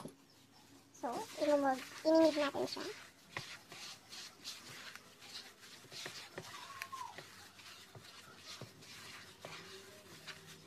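Plastic gloves crinkle and rustle while hands knead crumbly dough in a bowl.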